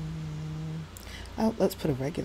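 A young woman talks briefly into a close microphone.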